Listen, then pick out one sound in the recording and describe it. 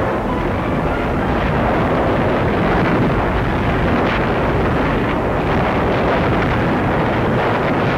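Four-engine piston bombers drone in flight.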